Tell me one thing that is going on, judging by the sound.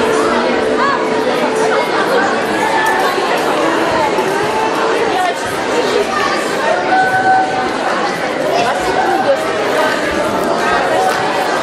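A large crowd of children and adults chatters loudly in an echoing hall.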